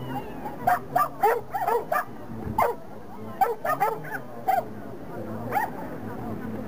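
A dog barks excitedly in short bursts outdoors.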